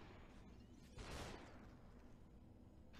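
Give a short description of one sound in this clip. A figure shatters like breaking glass.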